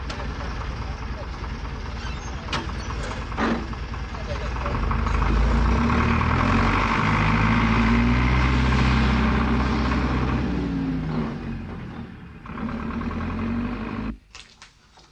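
A tractor engine rumbles and chugs nearby.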